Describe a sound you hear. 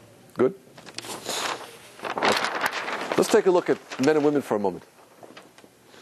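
A large sheet of paper rustles as it is flipped over.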